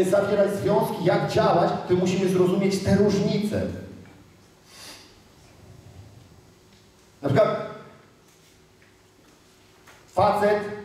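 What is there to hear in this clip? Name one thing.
A man speaks with animation in a large echoing hall.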